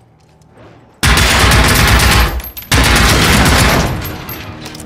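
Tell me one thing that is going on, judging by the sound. Rapid gunfire bursts loudly and echoes.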